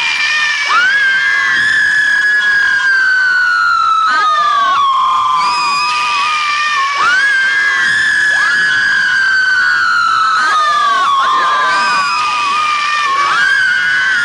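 A man sings loudly into a microphone, holding long high notes.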